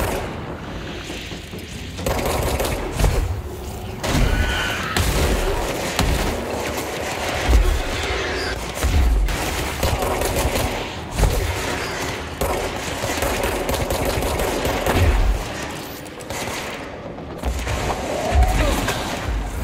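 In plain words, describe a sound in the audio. Debris clatters and scatters across the floor.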